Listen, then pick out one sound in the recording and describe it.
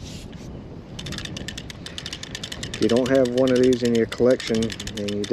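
A fishing reel clicks rapidly as its handle is cranked.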